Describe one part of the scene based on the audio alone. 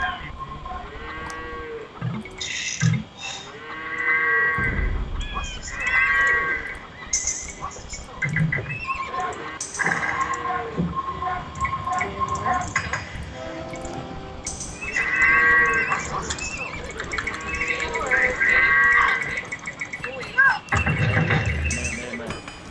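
Short game chimes and clicks sound in quick bursts.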